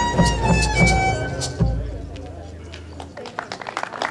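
A folk band plays a final chord on guitars and drum, which rings out.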